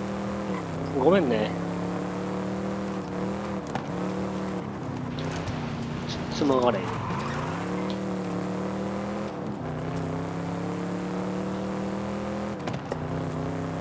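A car engine roars steadily, its pitch rising and dropping with the gear changes.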